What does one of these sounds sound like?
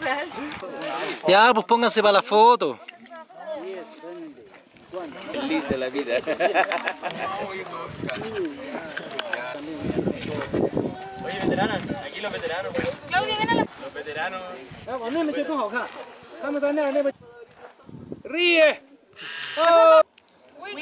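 A group of young men and women talk and call out over each other nearby, outdoors.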